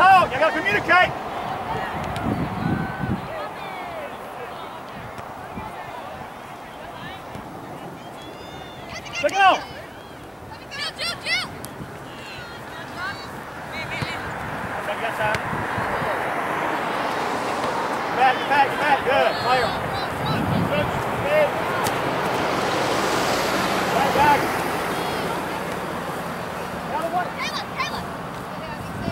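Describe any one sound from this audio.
Young women shout and call to each other at a distance outdoors.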